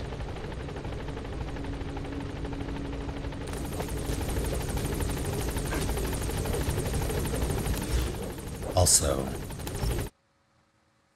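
A helicopter's rotor whirs loudly nearby.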